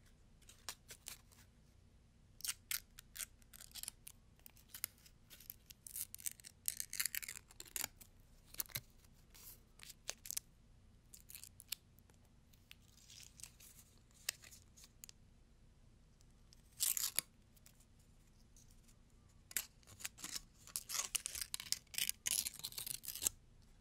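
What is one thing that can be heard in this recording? Fingertips tap and scratch close to a microphone in crisp, quick bursts.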